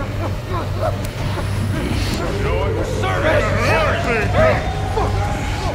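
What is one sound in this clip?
An electric machine hums, its pitch rising steadily.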